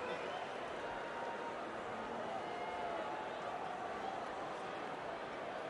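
A large crowd murmurs and cheers steadily in a big stadium.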